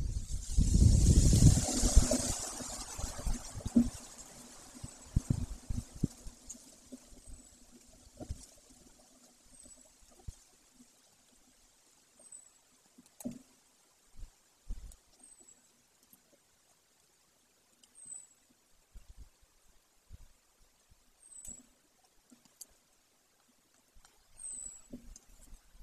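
A large bird tears at food on a nest, with soft rustling and knocking of twigs.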